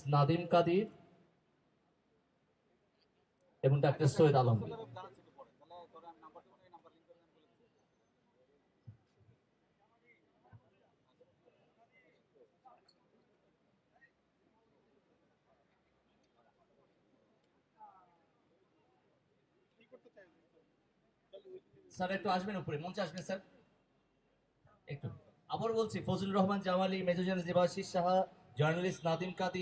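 A woman speaks into a microphone, heard through loudspeakers outdoors.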